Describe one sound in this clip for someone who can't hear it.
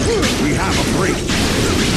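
Laser beams fire and zap repeatedly.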